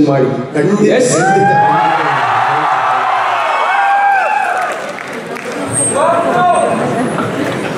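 A man calls out through a loudspeaker in a large echoing hall.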